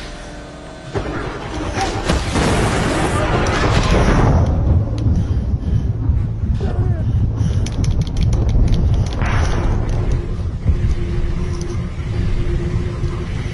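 Gunfire and blasts from a video game crack loudly.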